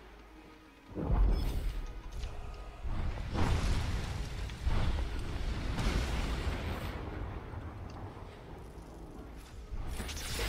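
Electric crackles and blasts of game spells burst out.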